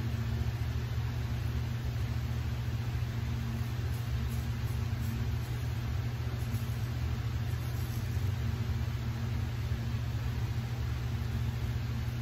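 A razor scrapes softly across stubble.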